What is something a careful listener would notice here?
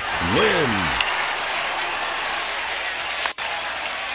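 A bright chime jingles as coins are counted.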